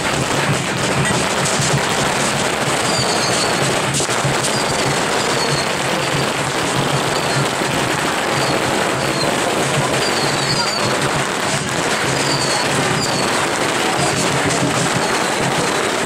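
A dense crowd of men and women chatters loudly all around, close by.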